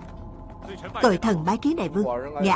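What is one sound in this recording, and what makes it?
A middle-aged man speaks loudly and forcefully, close by.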